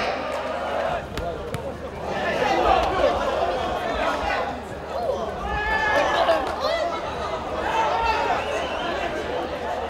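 A crowd of spectators murmurs and calls out outdoors.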